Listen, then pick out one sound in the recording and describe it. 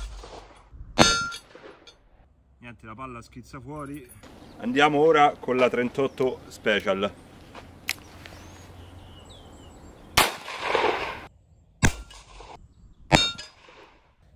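Bullets strike a steel plate with a sharp metallic ring.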